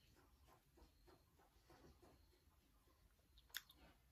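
A young woman chews food quietly.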